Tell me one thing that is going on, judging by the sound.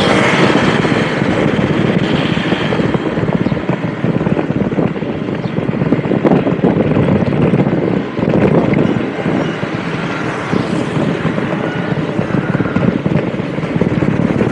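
Wind rushes and buffets loudly while travelling along a road outdoors.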